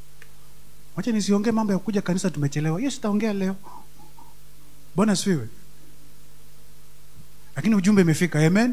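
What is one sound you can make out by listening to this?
A man speaks with animation into a microphone, heard through loudspeakers.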